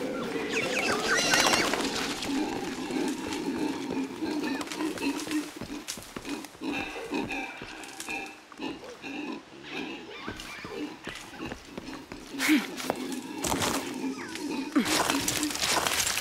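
Leaves and branches rustle as someone climbs through dense foliage.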